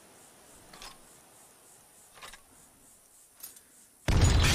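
Soft menu clicks tick as items are selected.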